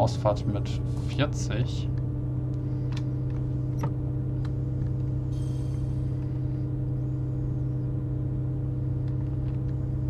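A diesel multiple unit's engine drones as the train rolls slowly along the track.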